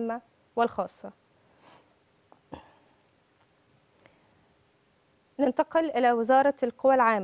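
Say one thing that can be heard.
A young woman speaks calmly into a microphone, close by.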